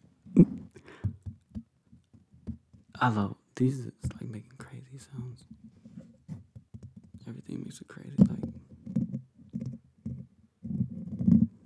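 Fingers tap and brush against a microphone's mesh.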